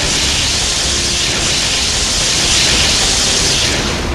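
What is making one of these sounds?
Lightning crackles and booms.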